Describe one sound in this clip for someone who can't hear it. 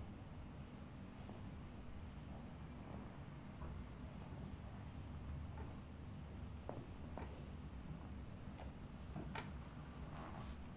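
Hands rub and press softly on bare skin.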